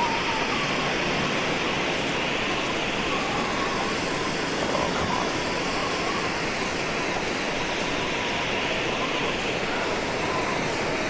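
A flare burns with a steady, loud hiss.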